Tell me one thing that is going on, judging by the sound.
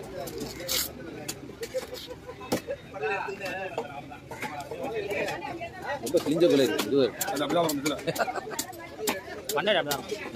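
A large knife chops through fish on a wooden block.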